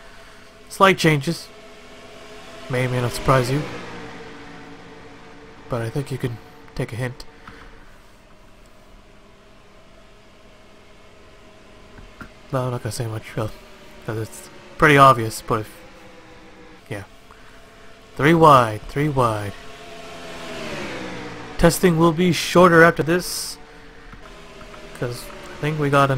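Race car engines drone steadily at high speed.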